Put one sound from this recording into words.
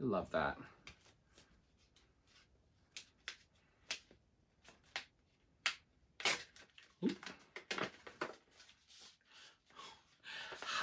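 Paper rustles as a card is handled.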